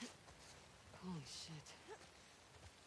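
A young woman exclaims quietly in surprise.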